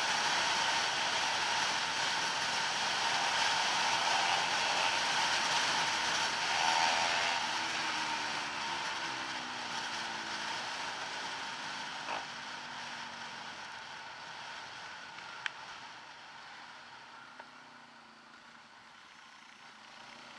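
A motorcycle engine hums and shifts in pitch as it rides.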